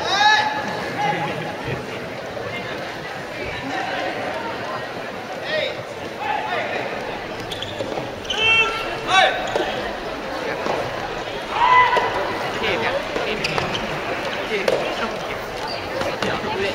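Young men shout loudly in a large echoing hall.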